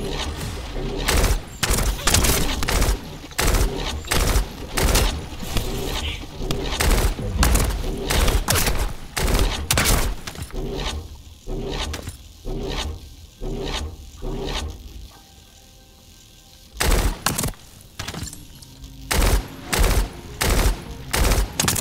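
Blasts and impacts boom.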